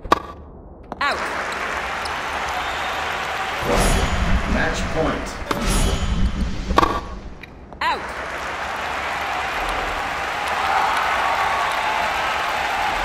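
A large crowd cheers and applauds in a big arena.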